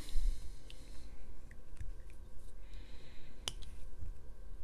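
Small plastic pieces click and snap together.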